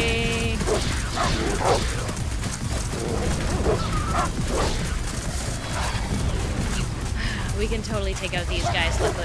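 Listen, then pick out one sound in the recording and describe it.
Dogs snarl and growl as they fight a bear.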